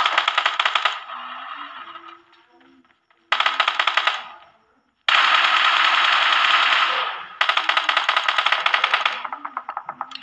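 A rifle fires rapid automatic bursts close by.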